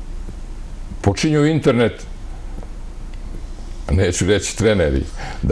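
An elderly man speaks with animation into a close microphone.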